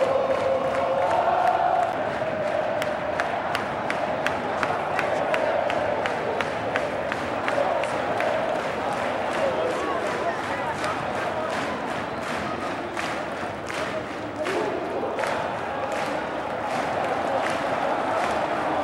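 A huge stadium crowd chants and sings loudly in unison.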